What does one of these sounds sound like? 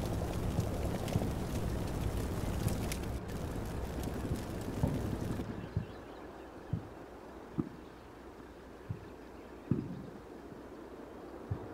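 Distant explosions thud now and then.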